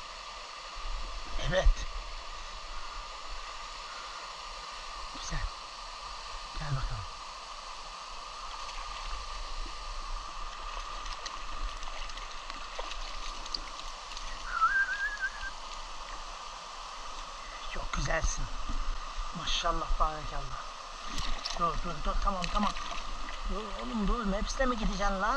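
A shallow stream flows and ripples steadily.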